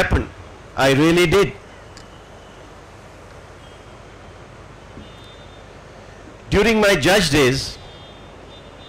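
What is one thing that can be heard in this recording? An elderly man speaks slowly through a microphone, with long pauses.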